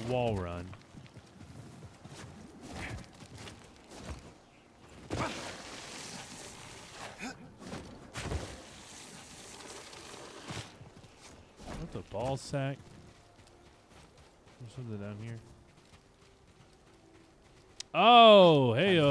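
A young man speaks into a close microphone with animation.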